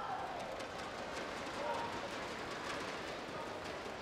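Rackets strike a shuttlecock back and forth in a large hall.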